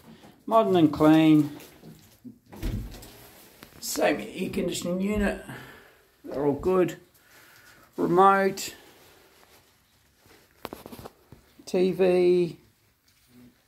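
A man speaks calmly close by, in short phrases with pauses.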